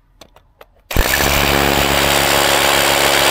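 A hammer drill hammers loudly into the ground.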